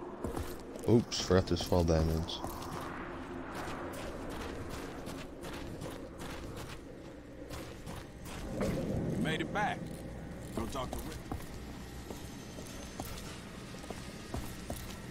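Footsteps thud steadily across hard ground and metal.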